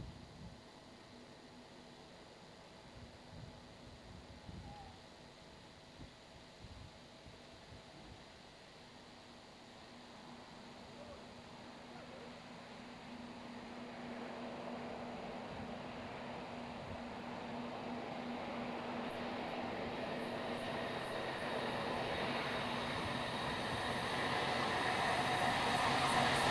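A diesel locomotive approaches along the tracks, its engine rumble growing steadily louder.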